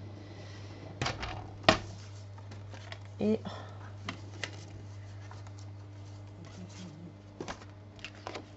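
Paper pieces tap down on a hard surface.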